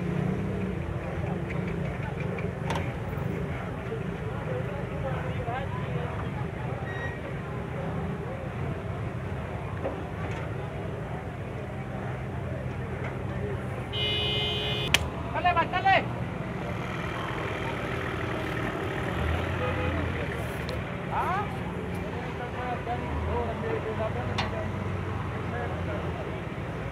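A crowd of men murmurs and calls out in the distance outdoors.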